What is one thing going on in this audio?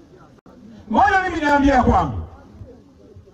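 A man shouts loudly into a microphone over a loudspeaker outdoors.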